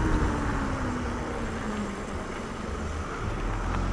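A van drives past slowly.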